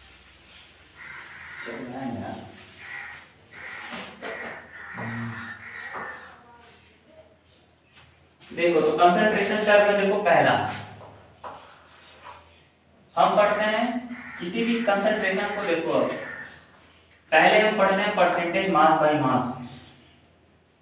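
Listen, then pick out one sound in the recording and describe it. A young man speaks clearly and steadily, like a teacher explaining.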